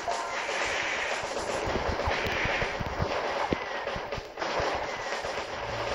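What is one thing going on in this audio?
Game gunfire rattles in rapid bursts.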